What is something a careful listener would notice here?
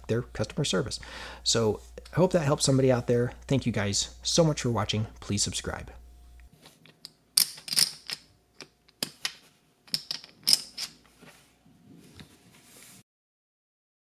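Clay poker chips click and clatter against each other.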